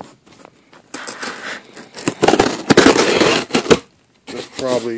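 Cardboard rustles and scrapes close by.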